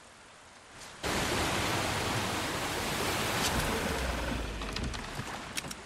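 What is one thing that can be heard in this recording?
A small boat splashes through water.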